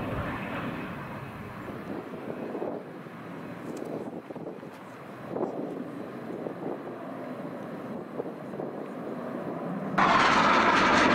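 A jet engine roars overhead, rising to a loud blast near the end.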